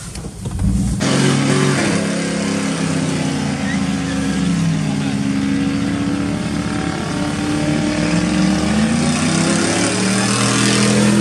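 Tyres screech as they spin on pavement.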